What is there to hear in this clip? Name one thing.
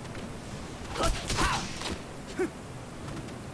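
Sword strikes clash and crackle in a game.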